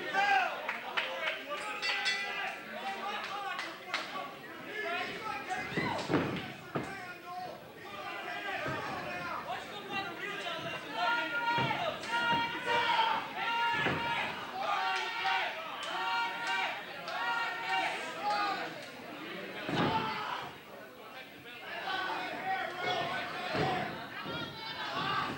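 A crowd of people shouts and cheers.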